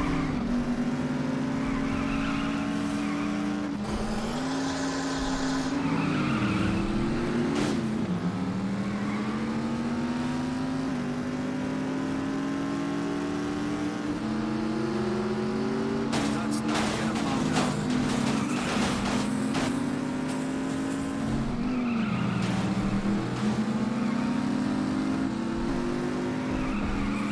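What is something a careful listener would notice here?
A racing car engine revs up and down steadily.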